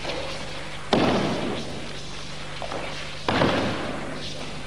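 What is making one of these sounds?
A body slams onto a mat with a heavy thud.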